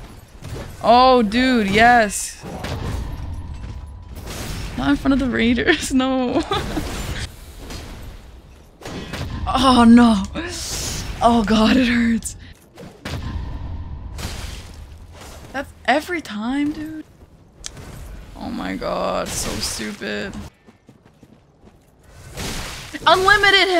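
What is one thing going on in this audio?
A young woman exclaims and talks with animation into a close microphone.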